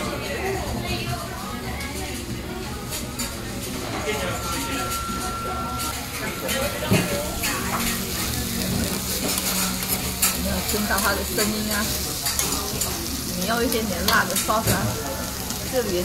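Metal spatulas scrape and clink against a griddle.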